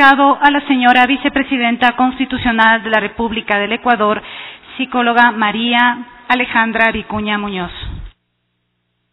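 A young woman speaks steadily into a microphone.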